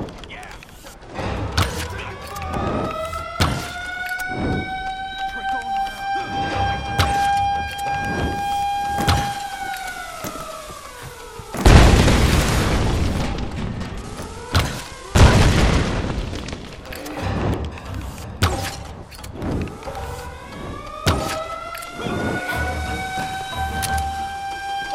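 Gunfire crackles in rapid bursts nearby.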